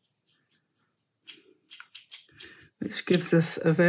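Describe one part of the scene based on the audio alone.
A brush swirls and clinks against a cup of water.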